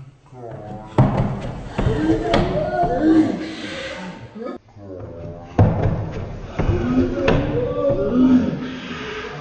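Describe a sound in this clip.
A man thumps and slides down a wooden staircase.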